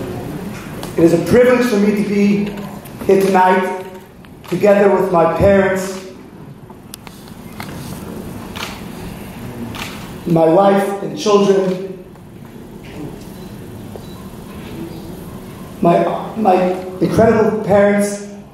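An elderly man speaks calmly into a microphone in a large echoing hall.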